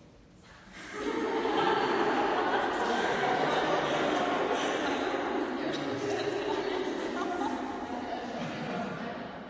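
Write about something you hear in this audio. A group of people sing loudly together in a large echoing hall.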